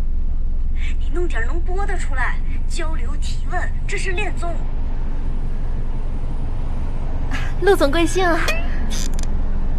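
A young woman speaks calmly into a phone nearby.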